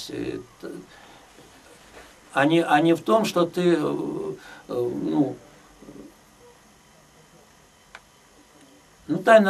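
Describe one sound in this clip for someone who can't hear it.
An elderly man speaks thoughtfully and close by, in short bursts with pauses.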